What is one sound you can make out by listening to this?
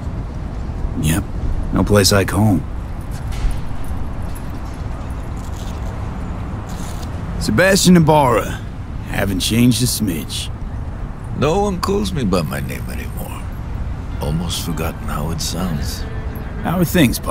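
A middle-aged man speaks calmly and warmly, close by.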